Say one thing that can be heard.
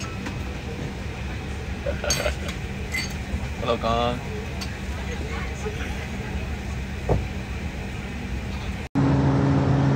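An airplane cabin hums with a steady low engine drone.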